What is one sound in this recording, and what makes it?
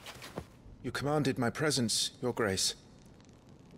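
A young man speaks calmly and respectfully.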